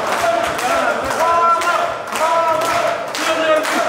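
People clap along.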